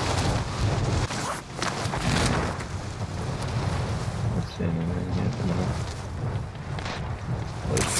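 A parachute snaps open and flaps in the wind.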